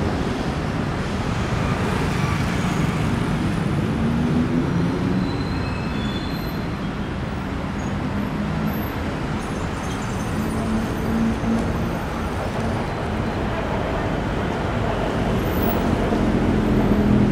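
City traffic hums steadily along a street at night.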